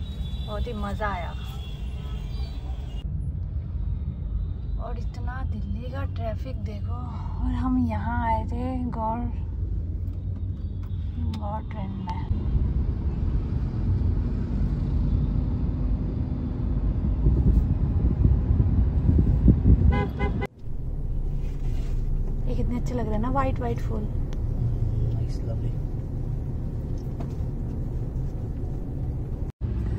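A car engine hums low and steady from inside a moving car.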